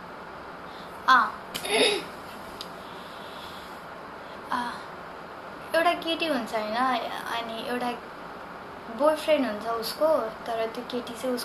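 A young woman sings softly close to a microphone.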